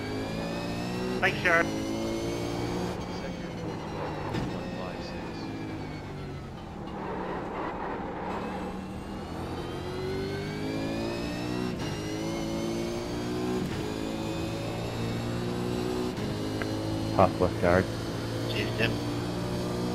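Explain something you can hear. A racing car engine roars, revving up and dropping through gear changes.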